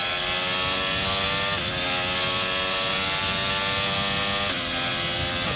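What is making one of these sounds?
A racing car engine screams at high revs, briefly dropping in pitch as it shifts gears.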